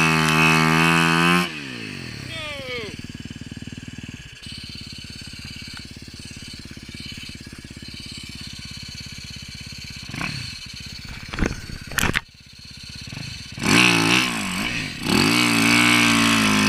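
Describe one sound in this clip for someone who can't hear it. A dirt bike engine revs loudly, then idles with a low, steady putter.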